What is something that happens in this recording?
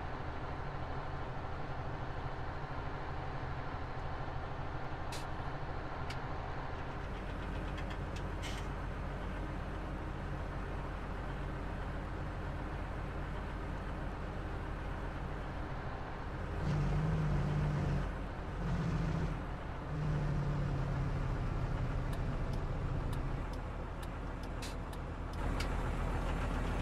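A truck's diesel engine rumbles steadily as it drives, growing louder now and then.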